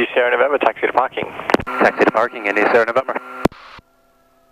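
A man speaks quickly over a crackly radio intercom.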